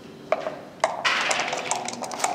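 Dice rattle in a cup.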